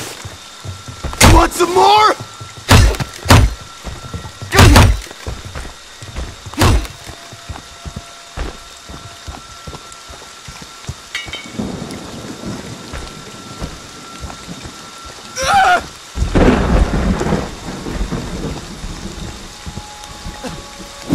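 Heavy footsteps thud slowly on the ground.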